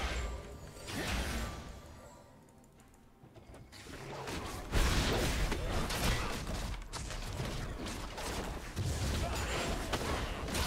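Game combat sound effects clash, whoosh and burst.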